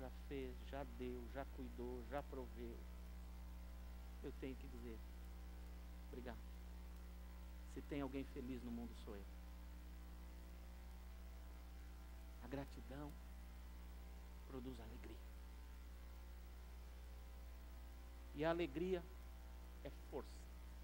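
An older man speaks calmly into a microphone, with long pauses, heard through loudspeakers in a large room.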